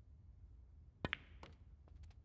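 A cue sharply strikes a snooker ball.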